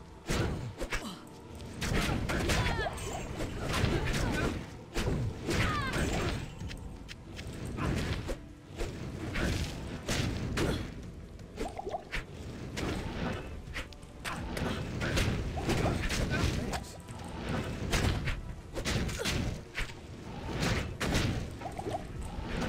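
Game spells crackle and blast in quick bursts.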